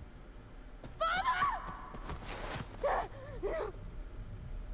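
A young woman sobs and cries out in distress.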